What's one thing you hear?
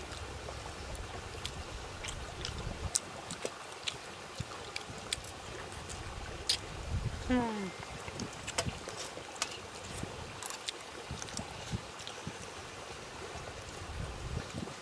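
A man chews and smacks his lips loudly, close by.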